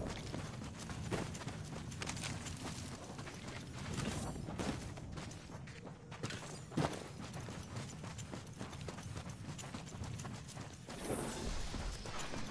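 Footsteps run quickly over sand and dirt.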